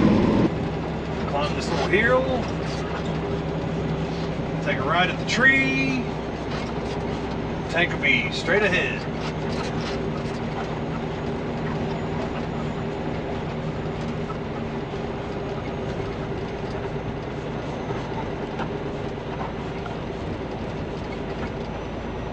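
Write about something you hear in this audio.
A truck engine drones steadily inside the cab.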